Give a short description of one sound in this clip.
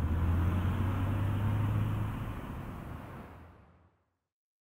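A car engine idles with a low hum.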